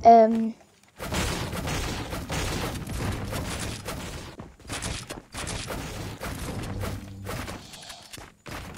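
Quick knocks and clatter of building go on rapidly.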